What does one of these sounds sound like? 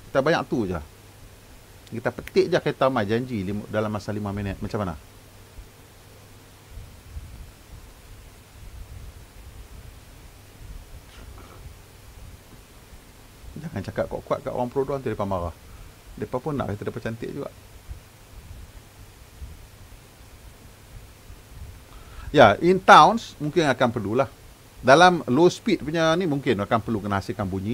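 A man talks calmly into a microphone, in pauses.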